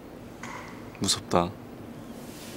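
A young man speaks briefly and softly, close by.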